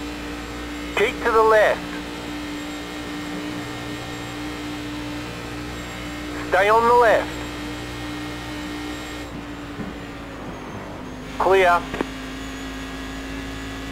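A racing car engine hums steadily at high revs.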